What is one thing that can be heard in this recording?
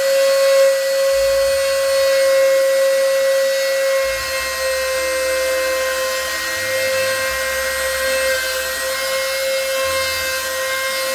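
A router motor whines steadily as it carves wood.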